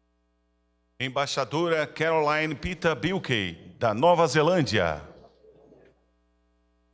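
A man announces loudly through a loudspeaker in an echoing hall.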